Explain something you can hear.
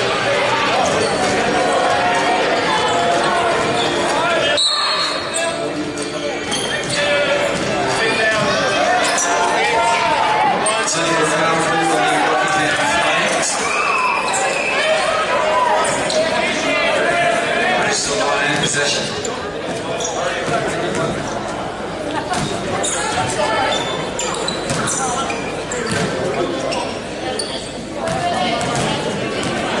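Many voices chatter throughout a large echoing hall.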